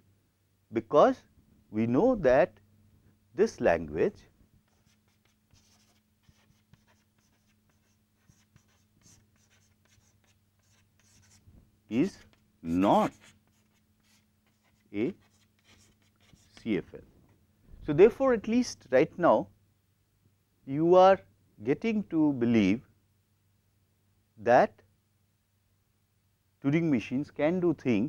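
A middle-aged man lectures through a clip-on microphone, speaking in short bursts with pauses.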